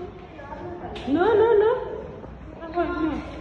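A young child squeals loudly.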